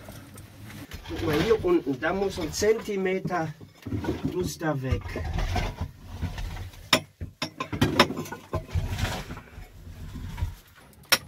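An elderly man speaks calmly close by.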